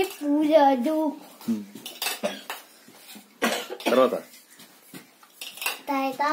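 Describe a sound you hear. A young boy talks loudly and playfully nearby.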